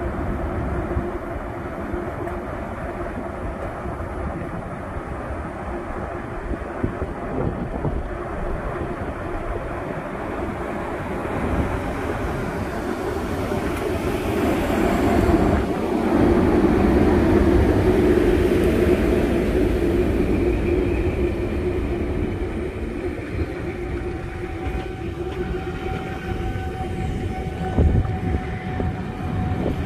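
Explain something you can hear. An electric locomotive hums loudly as it pulls a train slowly past, close by.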